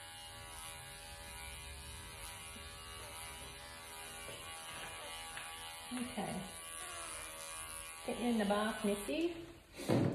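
Electric hair clippers buzz steadily up close.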